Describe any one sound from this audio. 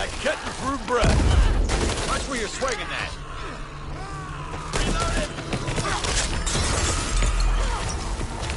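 Gunshots ring out in short bursts.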